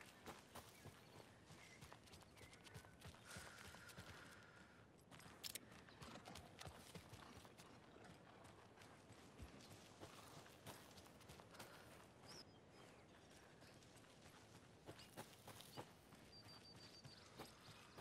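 Footsteps crunch through dry leaves and undergrowth.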